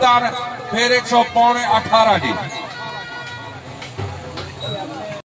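A crowd of people murmurs outdoors.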